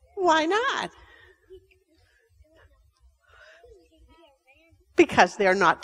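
A woman talks animatedly to a group of children.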